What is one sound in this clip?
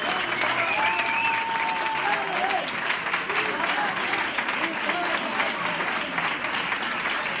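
A crowd of men and women cheers and chants loudly.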